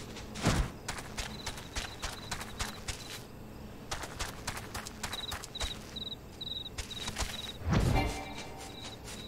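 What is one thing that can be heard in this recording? Footsteps of a running mount thud steadily on the ground.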